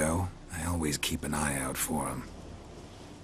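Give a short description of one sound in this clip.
A man speaks calmly in a low, gravelly voice.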